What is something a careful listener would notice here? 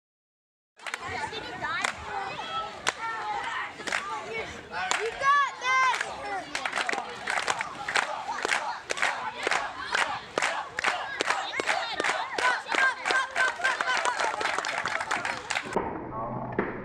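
A crowd of children and teenagers claps in a steady rhythm.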